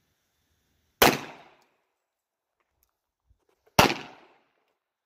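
A pistol fires loud single shots outdoors.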